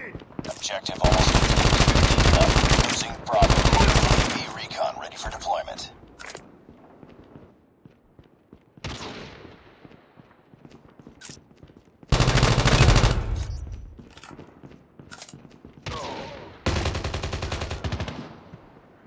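Rapid automatic gunfire rattles loudly in bursts.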